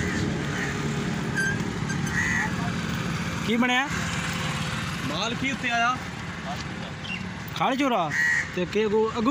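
A motorcycle engine idles nearby.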